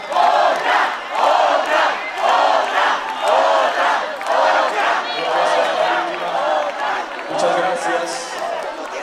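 A large crowd chants loudly in a steady rhythm.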